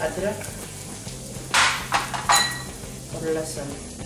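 Chopped garlic and ginger drop into a pan.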